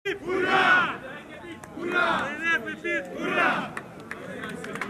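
A group of young men shout a loud chant together.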